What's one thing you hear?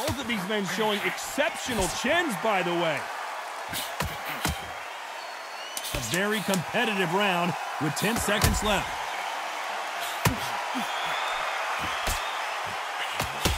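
Punches thud against a body in quick bursts.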